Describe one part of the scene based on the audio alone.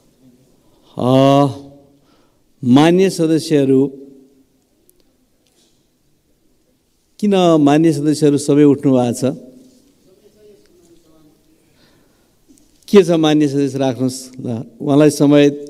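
An elderly man speaks loudly and slowly through a microphone in a large echoing hall.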